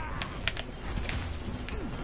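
An explosion bursts nearby.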